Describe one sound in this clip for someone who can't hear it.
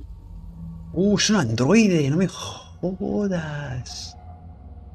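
A man speaks in a low, tense voice.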